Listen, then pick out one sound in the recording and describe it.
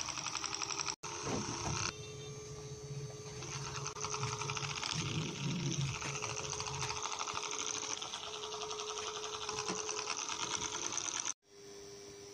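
A small electric fan whirs softly.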